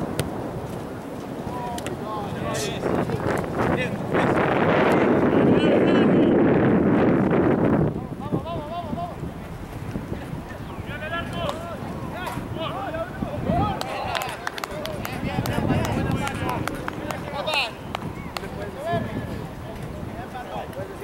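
A soccer ball is kicked with a dull thud.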